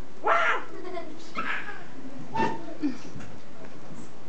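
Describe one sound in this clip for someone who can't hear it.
Children shout and laugh loudly nearby.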